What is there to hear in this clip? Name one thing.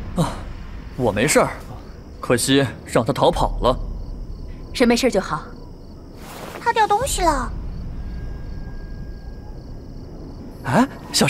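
A young man speaks quietly.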